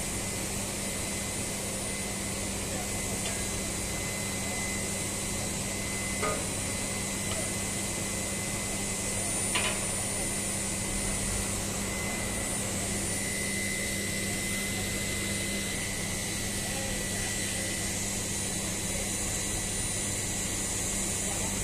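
Industrial machinery hums steadily in a large, echoing space.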